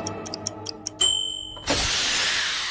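A kitchen timer dings.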